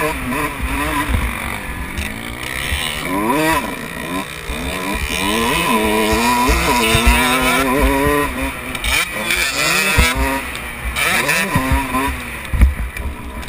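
A motorcycle engine revs hard and close, rising and falling in pitch as it shifts.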